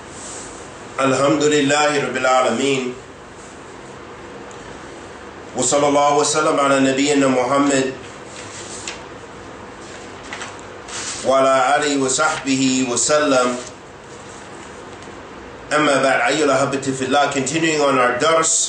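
A man reads aloud in a steady chanting voice, close to a microphone, in short phrases with pauses.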